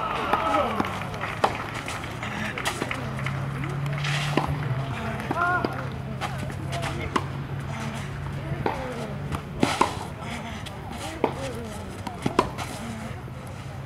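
A racket strikes a tennis ball with sharp pops.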